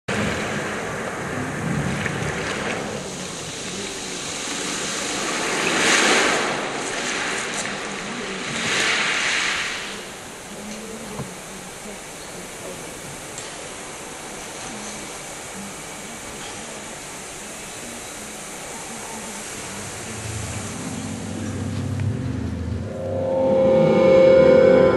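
A man speaks through loudspeakers in a large echoing hall.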